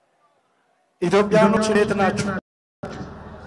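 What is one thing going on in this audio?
A large crowd chants and cheers outdoors.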